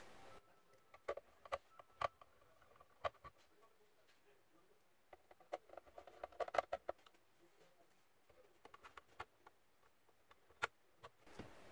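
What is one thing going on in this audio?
Hands handle a plastic case with light clicks and taps.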